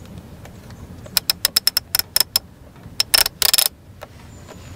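A knob on a blower clicks as a hand turns it.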